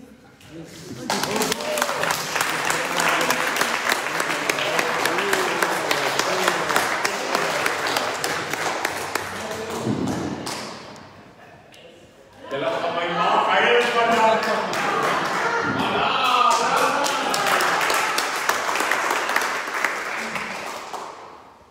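A crowd applauds and cheers loudly in an echoing hall.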